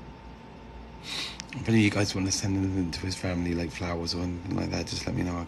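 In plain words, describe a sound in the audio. A middle-aged man speaks close to the microphone.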